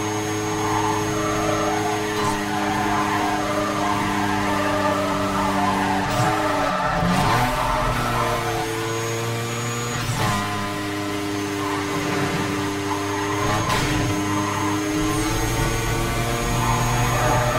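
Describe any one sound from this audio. A car engine roars steadily at high revs, dipping briefly as the gears shift.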